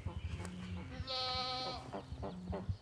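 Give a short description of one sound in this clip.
Domestic ducks quack.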